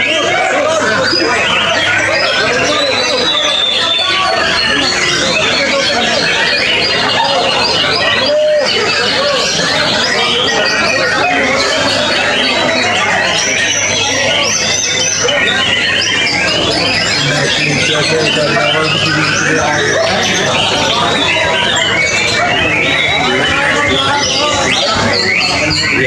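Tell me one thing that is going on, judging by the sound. Many caged birds chirp and twitter loudly all around.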